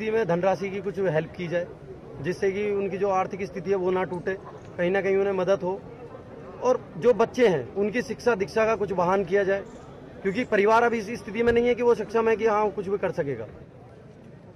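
A young man speaks loudly and with animation close to a microphone.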